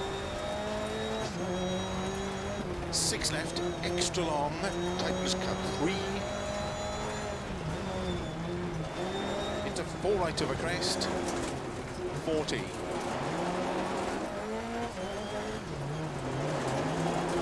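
A rally car engine revs up and down as it drives.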